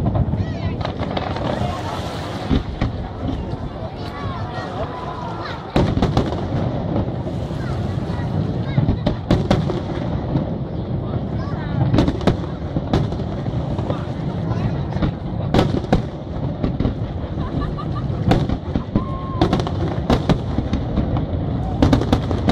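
Fireworks burst with sharp bangs and booms far off in the open air.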